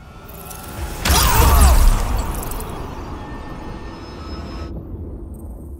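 A blaster fires a loud, crackling energy beam.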